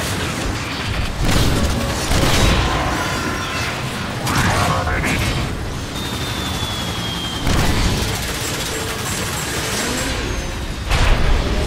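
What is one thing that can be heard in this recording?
Heavy metal parts clank and whir as a robot transforms.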